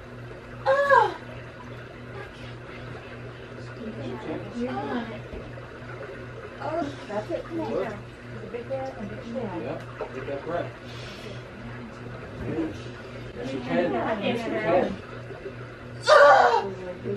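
Women talk quietly close by.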